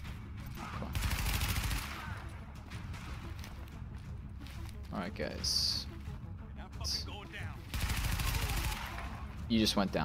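A rifle fires a burst of shots.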